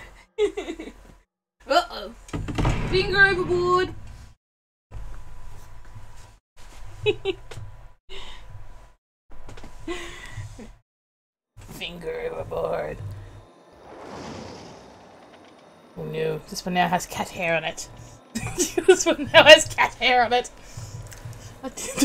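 A woman talks with animation close to a microphone.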